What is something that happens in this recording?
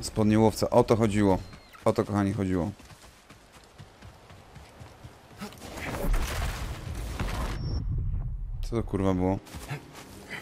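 A man talks with animation, close to a microphone.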